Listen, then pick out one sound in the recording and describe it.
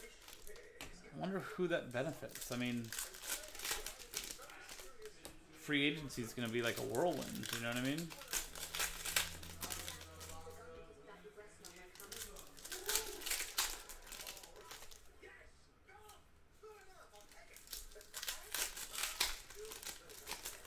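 Foil packs crinkle and rustle as they are torn open.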